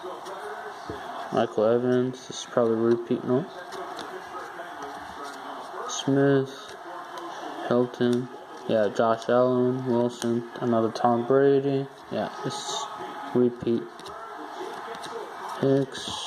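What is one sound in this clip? Trading cards rustle and slide against each other as they are flipped through.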